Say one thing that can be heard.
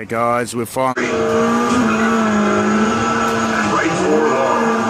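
An arcade racing game roars with engine sounds through its speakers.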